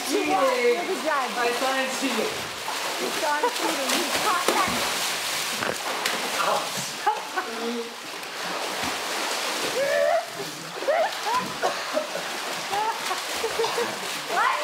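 A young man shouts and laughs with excitement nearby.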